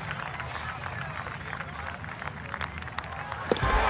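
A putter taps a golf ball.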